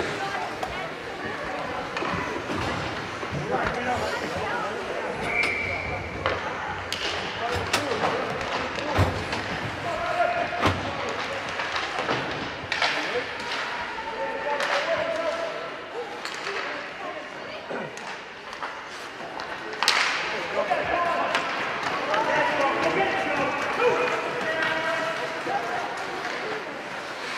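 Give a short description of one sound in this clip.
A crowd of spectators cheers and shouts in a large echoing rink.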